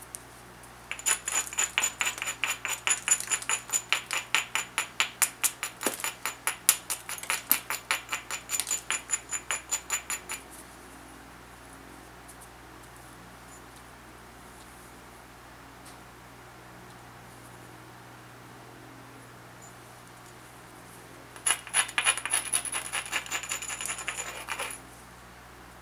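A hammerstone rubs rapidly along the edge of a flint, making sharp, quick ticking scrapes.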